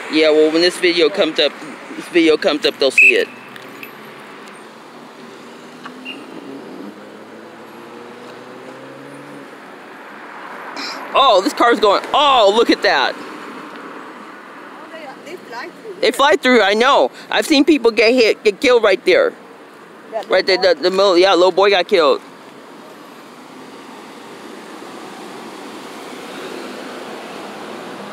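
Cars drive past on a road outdoors.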